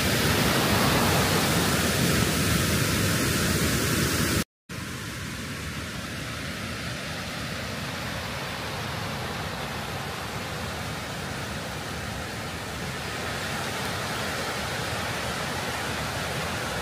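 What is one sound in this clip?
A mountain stream rushes over rocks outdoors.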